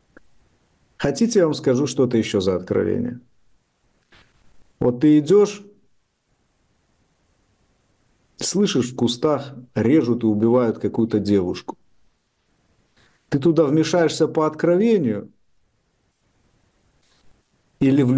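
A man speaks calmly in bursts over an online call.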